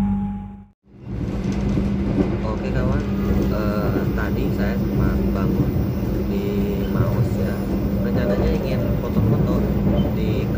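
A young man talks calmly and close into a small microphone.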